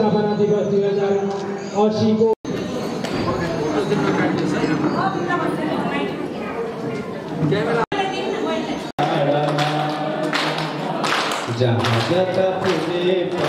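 A middle-aged man speaks firmly into a microphone, heard through a loudspeaker.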